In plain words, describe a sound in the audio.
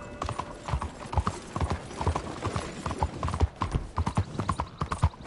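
A horse's hooves clop quickly on a cobbled street.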